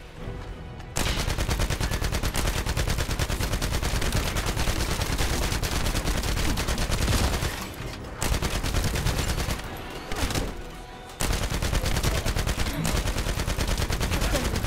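Rapid gunfire rattles loudly in quick bursts.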